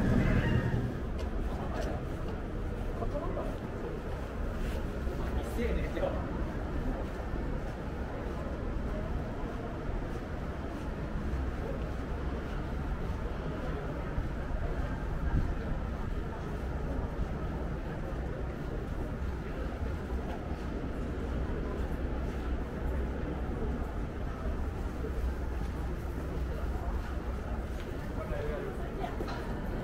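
Outdoors, a low steady rumble of a city street carries on throughout.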